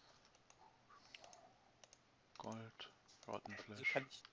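Items click as they are moved between slots.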